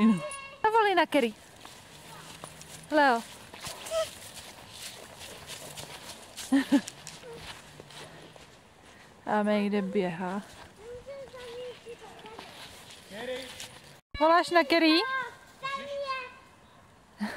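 A toddler babbles and squeals in high bursts close by.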